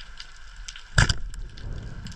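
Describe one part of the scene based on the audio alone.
A speargun fires underwater with a sharp snap.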